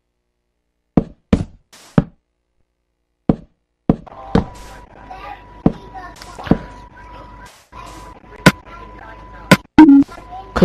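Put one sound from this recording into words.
Wooden blocks knock softly as they are placed one after another.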